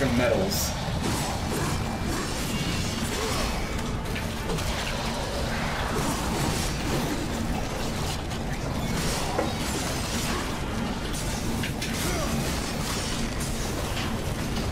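A young man speaks through a headset microphone.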